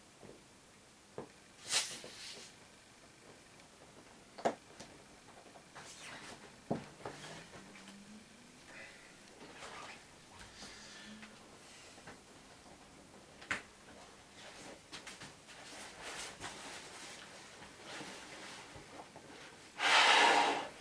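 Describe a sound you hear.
Vinyl of an inflatable toy rubs and creaks softly under hands.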